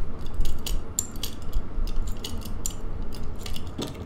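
A lock dial clicks as it is turned.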